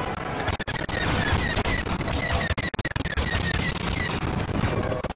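Laser blasts fire in rapid bursts.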